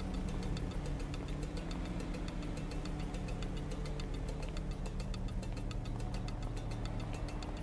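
Footsteps scuff slowly on pavement.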